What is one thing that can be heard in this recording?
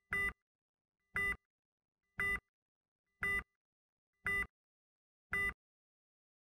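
A heart monitor beeps at an even pace.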